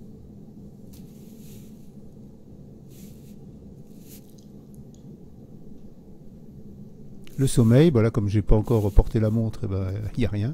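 A fingertip taps lightly on a watch's touchscreen.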